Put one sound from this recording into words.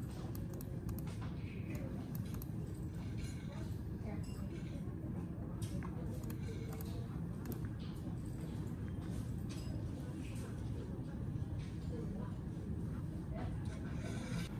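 Keys on a keyboard click softly as someone types.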